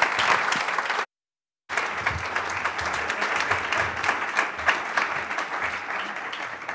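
An audience applauds steadily in a room.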